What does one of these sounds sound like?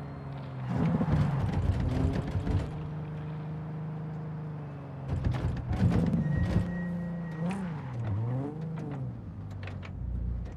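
Tyres screech as a car drifts around corners.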